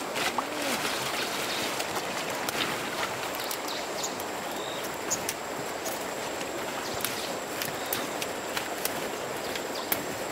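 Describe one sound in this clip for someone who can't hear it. Large leaves rustle as they are handled.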